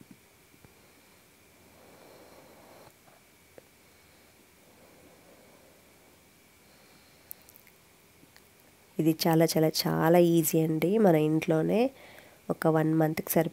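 A sponge scrubs a steel cup with a soft, wet rubbing.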